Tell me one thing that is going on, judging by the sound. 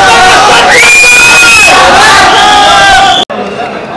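A young man cheers excitedly.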